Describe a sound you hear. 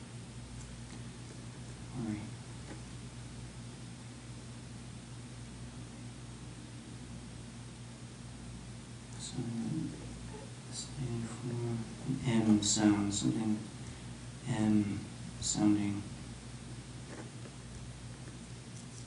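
A pen scratches on paper while writing.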